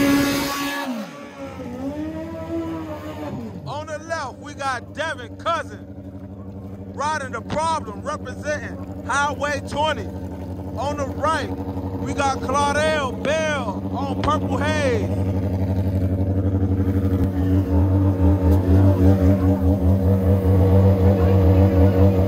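A motorcycle engine idles with a low rumble.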